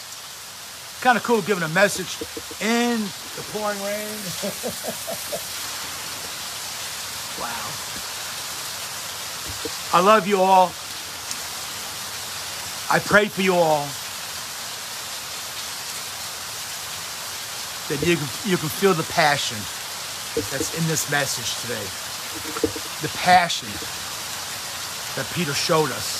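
A middle-aged man talks calmly and warmly close by.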